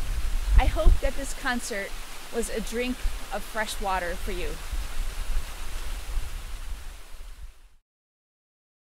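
A waterfall splashes steadily outdoors.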